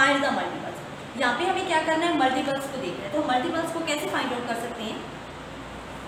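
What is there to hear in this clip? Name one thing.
A young woman speaks calmly and clearly, as if teaching, close by.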